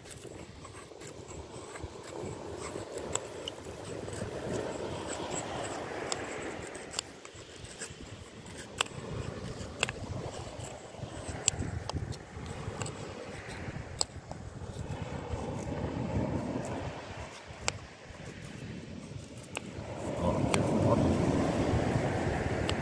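A knife shaves curls from a stick of palm wood.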